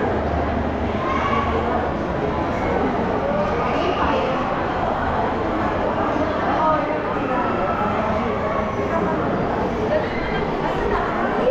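A large crowd of children and adults chatters and shouts under an echoing roof.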